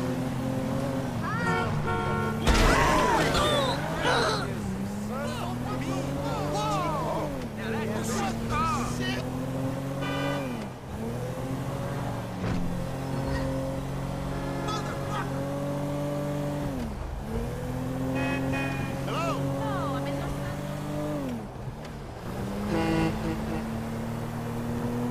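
A car engine revs and shifts up through its gears as a car speeds along.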